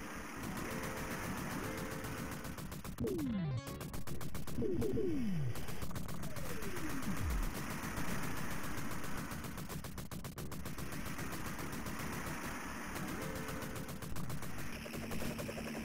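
Rapid arcade gunfire rattles almost nonstop.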